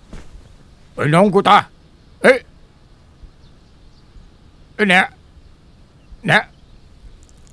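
An elderly man speaks earnestly close by.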